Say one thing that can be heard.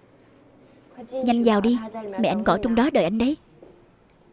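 A young woman speaks playfully close by.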